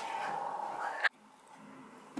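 A small hand taps on a window pane.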